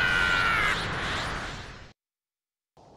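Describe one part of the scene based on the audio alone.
A fierce blaze of fire roars loudly.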